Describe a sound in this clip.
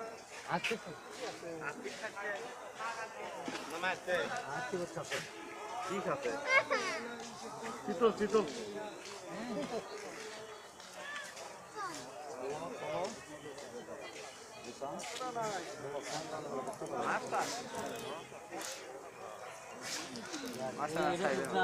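A crowd of men talk and call out nearby, outdoors.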